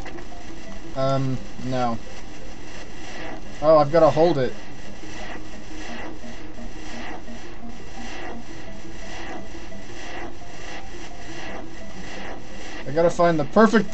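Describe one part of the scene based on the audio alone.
Electronic game splashes repeat in a quick, steady beat.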